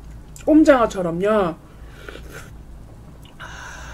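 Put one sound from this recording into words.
A young woman chews food wetly close to a microphone.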